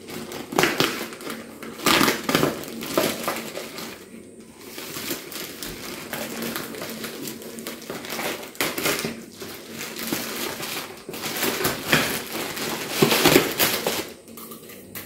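A plastic bag crinkles and rustles as it is handled.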